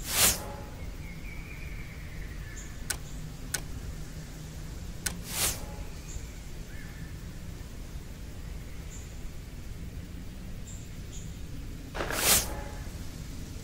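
Short whooshing swishes sound as game pieces slide into place.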